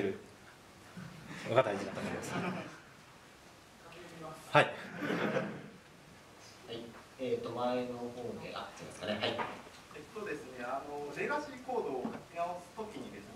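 A young man speaks through a microphone in a hall, in bursts with pauses.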